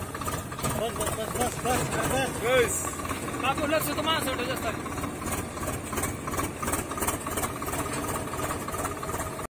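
A tractor engine rumbles steadily nearby.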